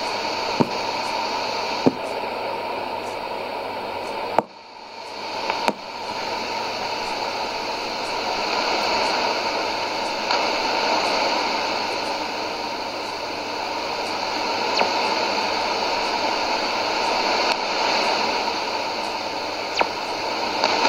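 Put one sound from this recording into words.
Static crackles in sharp pops from a radio loudspeaker.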